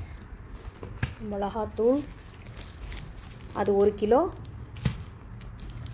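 A package thumps softly onto a tiled floor.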